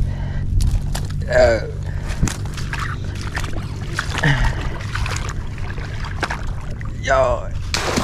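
A net rustles and swishes as it is pulled from the water.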